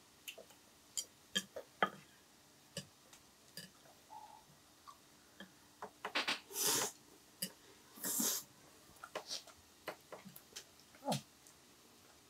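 Metal tongs clink and scrape against a hot grill pan.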